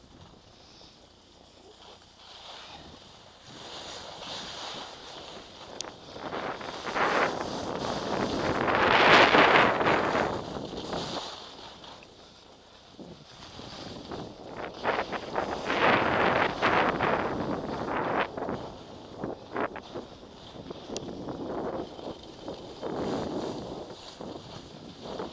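Skis scrape and hiss over packed snow, swelling and fading.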